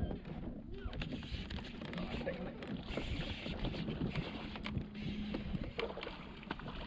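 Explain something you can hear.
A fishing reel clicks and whirs as a line is reeled in.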